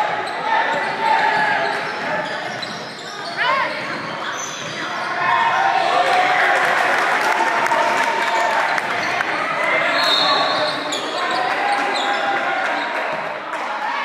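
Young men shout and call to each other across the court.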